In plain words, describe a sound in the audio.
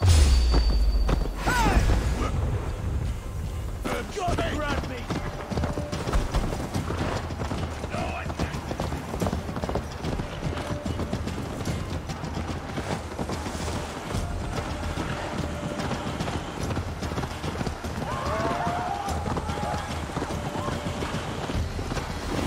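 Horse hooves clatter steadily on a dirt path.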